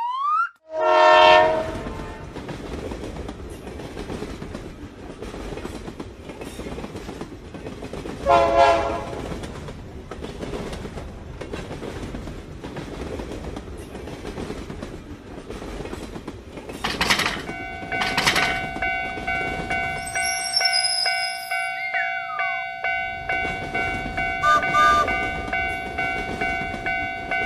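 A train engine rumbles and clatters along a track.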